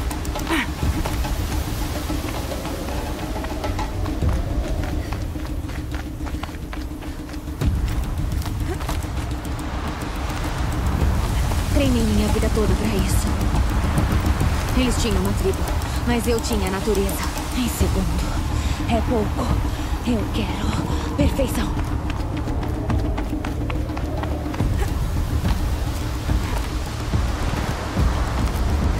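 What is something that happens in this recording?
Wind blows steadily and gusts outdoors.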